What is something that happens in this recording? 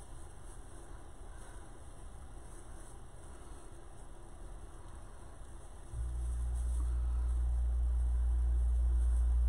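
Tinsel and netting rustle softly under hands.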